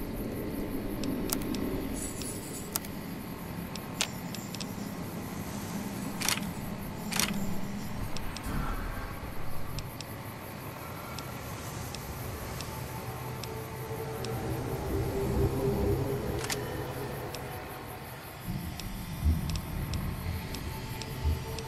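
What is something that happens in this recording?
Soft electronic menu clicks tick as items are scrolled through.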